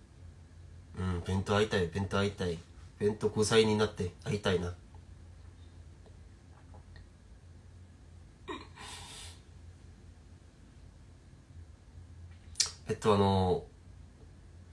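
A young man speaks calmly and close to the microphone, in short bursts with pauses.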